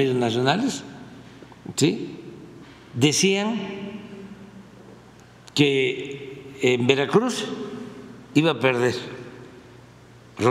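An elderly man speaks emphatically into a microphone in a large echoing room.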